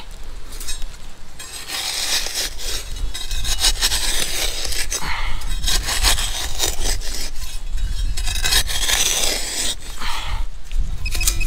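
A hand digger scrapes and chops into dry soil.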